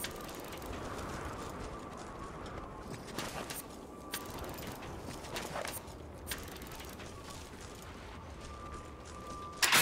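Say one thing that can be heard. Footsteps crunch on snow and gravel.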